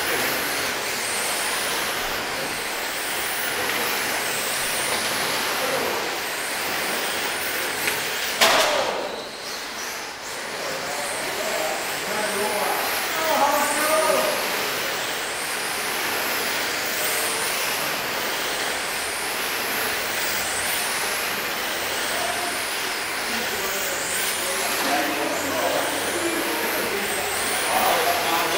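Small electric motors whine loudly as model cars race around a track.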